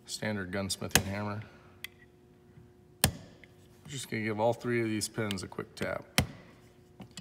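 A hammer taps sharply on a metal punch.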